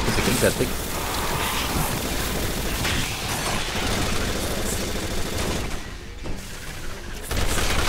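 Gunshots fire in quick bursts, with bullets clanging off metal.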